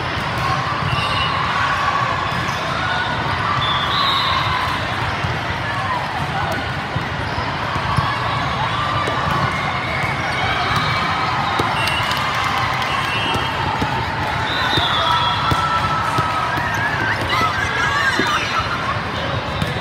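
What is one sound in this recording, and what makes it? Squeaky sneakers squeal on a hard court.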